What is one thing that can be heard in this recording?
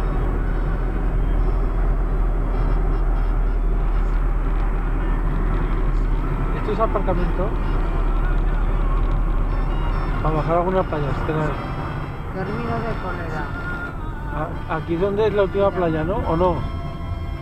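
A car engine hums steadily with tyre noise heard from inside the car.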